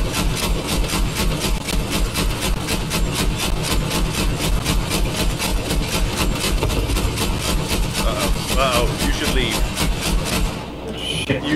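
A heavy machine gun fires rapidly and steadily.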